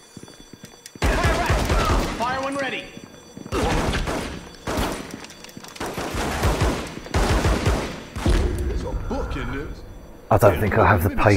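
Pistol shots ring out, loud and sharp.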